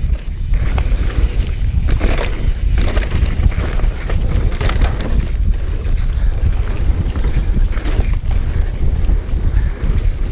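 Tall grass swishes against a bicycle.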